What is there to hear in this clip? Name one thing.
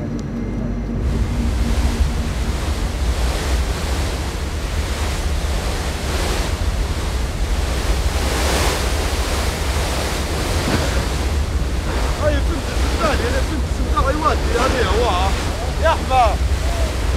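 Wind rushes past over open water.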